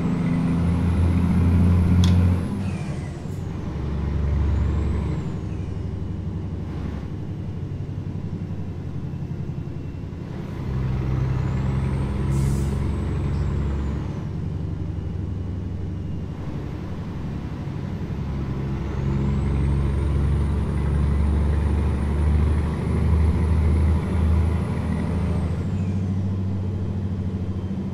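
A truck engine hums steadily, rising and falling in pitch.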